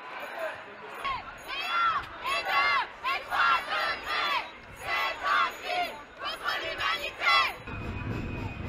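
A crowd of marchers shouts and chants loudly.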